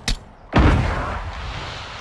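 A shotgun fires a single loud, booming blast that rings out briefly.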